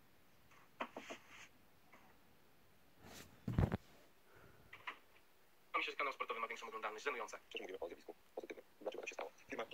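A man speaks with animation through a laptop speaker.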